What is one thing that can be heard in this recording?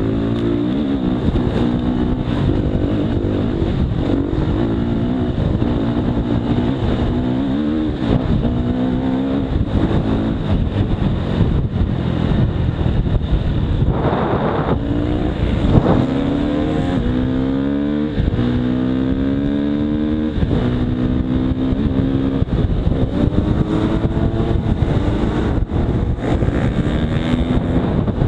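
Wind rushes past a moving rider.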